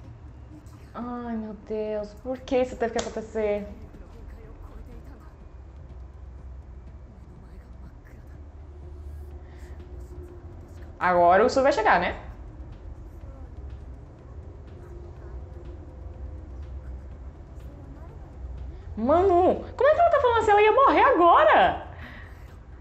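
A young woman speaks with animation into a close microphone, in short bursts.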